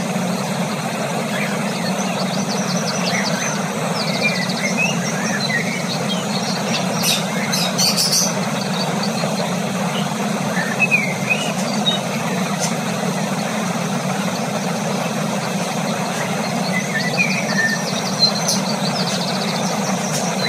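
A cockatiel pecks and cracks seeds from a millet spray.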